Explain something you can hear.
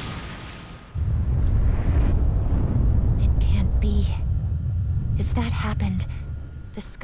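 A deep, heavy rumble of an eruption roars steadily.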